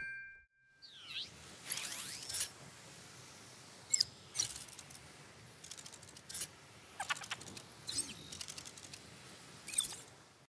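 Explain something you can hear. A small hovering drone chirps and beeps.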